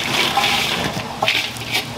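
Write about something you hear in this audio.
A gloved hand scrapes dried fish out of a metal bowl.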